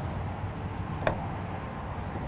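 A metal latch clicks open.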